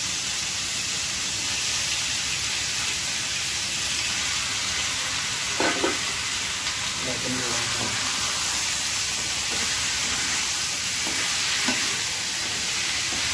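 Chicken sizzles in oil in a wok.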